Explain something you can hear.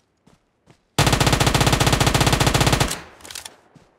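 An automatic gun fires a loud, rapid burst.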